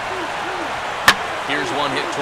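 A bat cracks sharply against a baseball.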